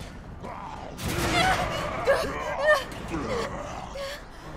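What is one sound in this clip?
A monster lets out a loud, shrieking roar up close.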